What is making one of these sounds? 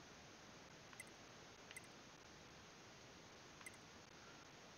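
Soft electronic clicks tick as a menu selection moves.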